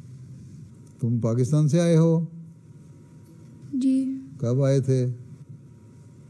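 An elderly man speaks calmly in a deep voice.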